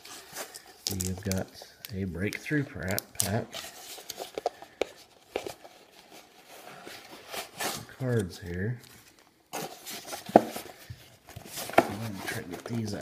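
Plastic wrapping crinkles and rustles as a box is handled close by.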